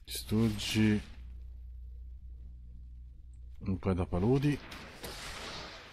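A magical whoosh bursts out as a spell strikes.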